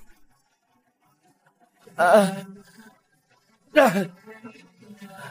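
A man groans loudly in pain.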